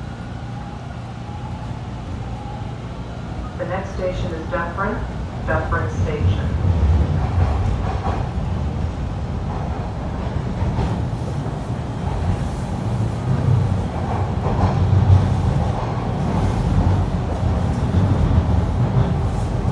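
A subway train rumbles steadily along the tracks.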